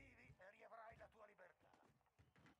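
A young man talks into a microphone close by.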